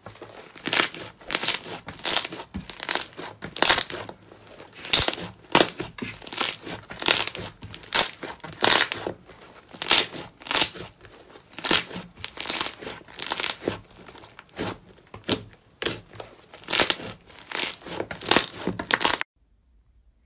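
Hands squish fluffy slime, making crackling pops.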